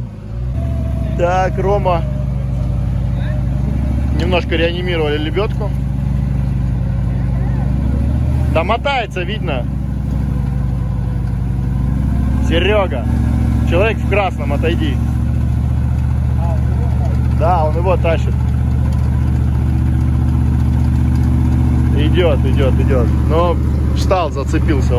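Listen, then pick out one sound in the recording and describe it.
A vehicle engine rumbles and revs as it crawls through thick mud.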